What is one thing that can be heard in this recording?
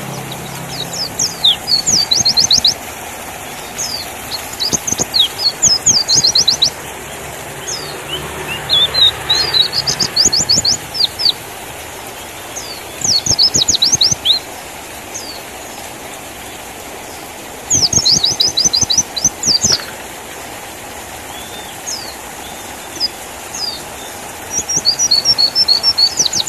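A small bird sings close by in quick bursts of high, sharp chirps and trills.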